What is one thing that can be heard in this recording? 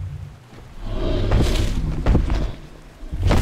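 Heavy footsteps thud and stomp.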